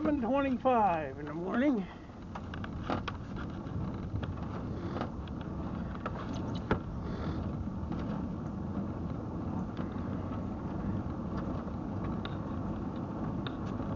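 Small tyres rumble steadily over rough asphalt.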